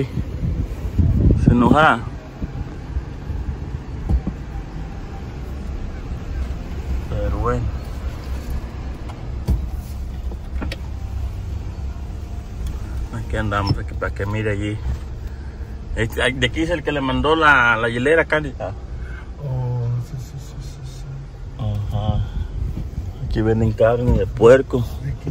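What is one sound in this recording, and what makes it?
A car engine hums low and steady from inside the car as it drives.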